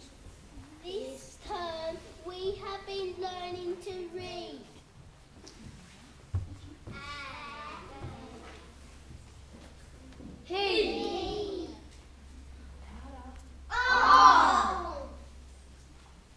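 Young children speak one after another in a large echoing hall.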